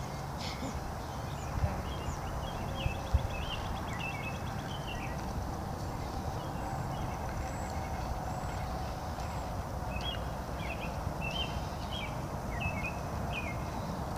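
Small plastic wheels roll and rumble on pavement.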